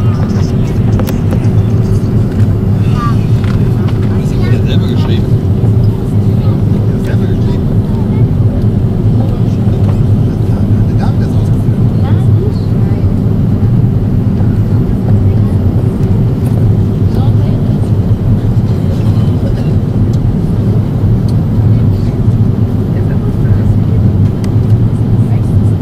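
A jet airliner's engines roar steadily inside the cabin.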